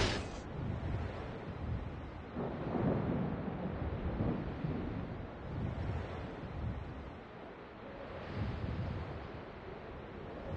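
A ship's engine rumbles steadily.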